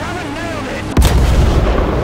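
A tank gun fires with a loud bang.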